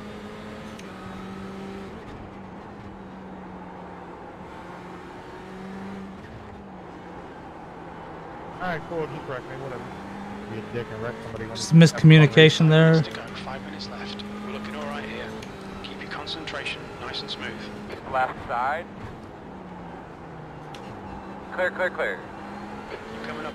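A racing car engine drones steadily, shifting pitch as the car brakes and accelerates.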